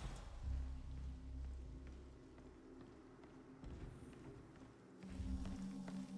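Footsteps climb stairs at a walking pace.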